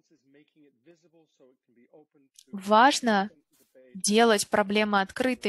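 A man speaks over an online call, calmly and then with more emphasis.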